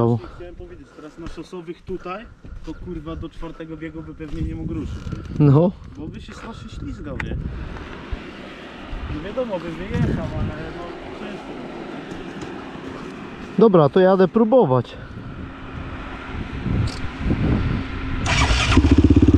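A quad bike engine idles nearby.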